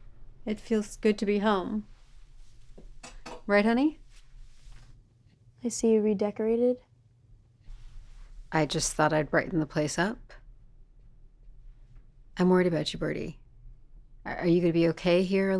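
A middle-aged woman speaks calmly nearby.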